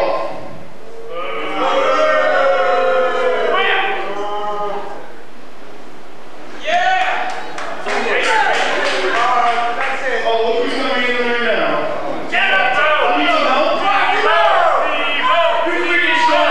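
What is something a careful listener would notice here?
A young man speaks with animation into a microphone.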